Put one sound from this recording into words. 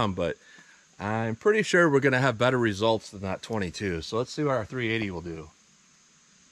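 A man talks calmly and clearly close by.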